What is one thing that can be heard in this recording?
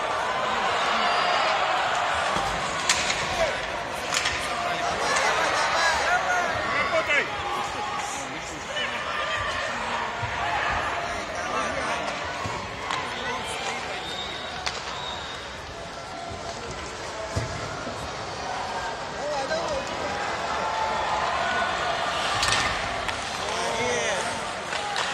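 Ice skates scrape and hiss on the ice.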